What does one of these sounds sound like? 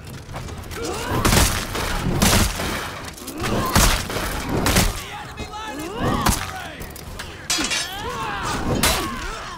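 Swords and shields clash loudly and repeatedly in a fierce melee.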